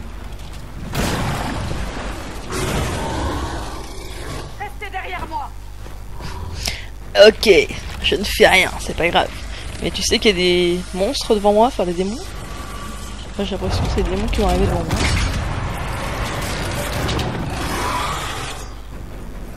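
A magical rift roars with a deep rushing whoosh.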